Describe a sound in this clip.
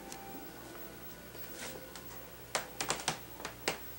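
A cat paws at a cloth on the floor.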